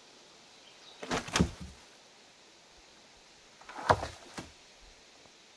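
Bark rips and tears from a log.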